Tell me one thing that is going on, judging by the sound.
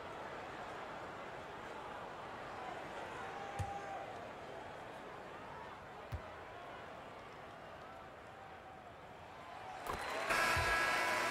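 A large crowd murmurs in a big arena.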